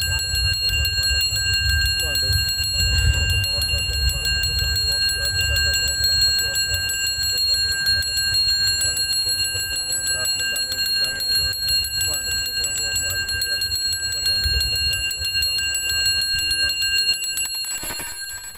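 A hand bell rings rapidly and steadily.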